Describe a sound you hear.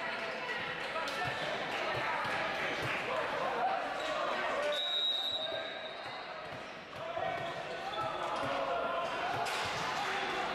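A volleyball is struck with sharp slaps in a large echoing hall.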